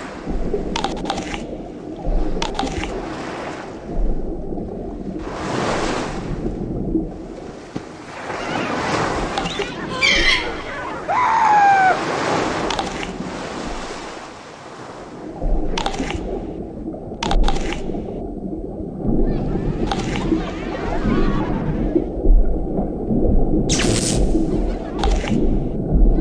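A shark's jaws chomp with sharp crunching bites.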